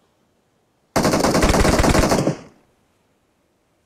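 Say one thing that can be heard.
A gun fires a rapid burst of automatic shots, then the sound fades away.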